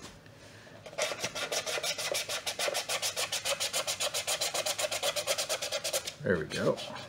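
Fingers rub quickly back and forth over a hard plastic surface.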